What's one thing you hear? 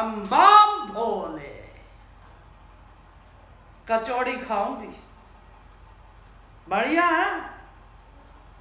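A middle-aged woman speaks expressively in short bursts, close by.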